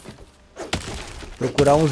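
An axe strikes a tree trunk with sharp thuds.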